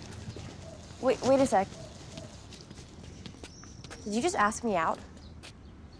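A young woman speaks sharply and with emotion, close by.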